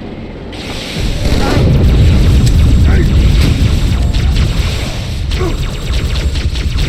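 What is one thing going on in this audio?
Energy weapons fire in rapid zapping bursts.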